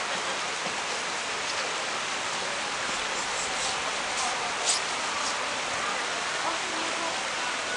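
Water flows and splashes steadily in a channel.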